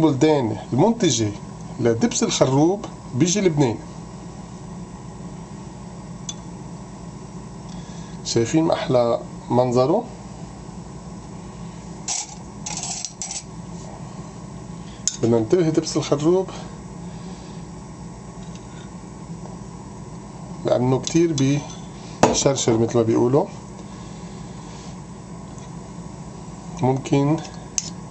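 A metal spoon clinks and scrapes against a bowl.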